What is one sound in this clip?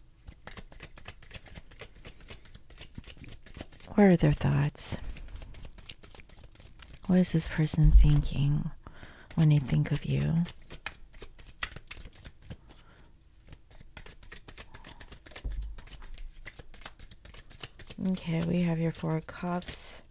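Playing cards riffle and slap softly as they are shuffled.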